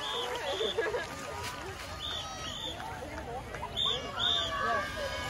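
A crowd of young girls chatter and shout nearby, outdoors.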